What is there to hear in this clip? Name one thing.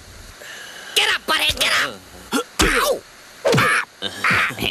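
A teenage boy shouts angrily.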